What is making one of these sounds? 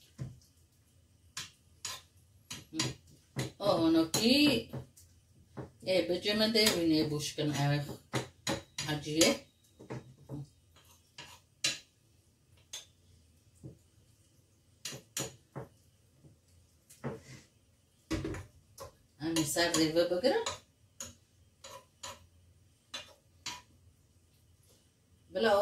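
A metal spoon scrapes and clinks against a frying pan.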